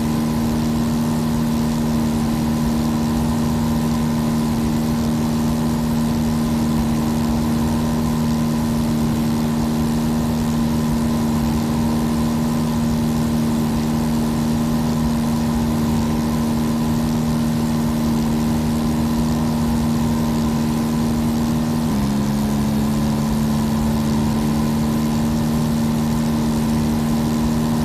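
A small propeller plane's engine drones steadily, its pitch dropping slightly partway through.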